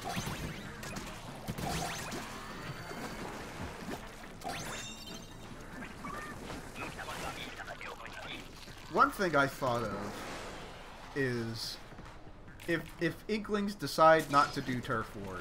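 Paint splatters and squelches in bursts.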